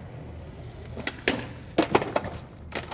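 A skateboard clatters and slaps on concrete.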